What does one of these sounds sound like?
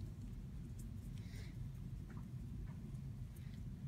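A brush dabs and scrapes softly on card.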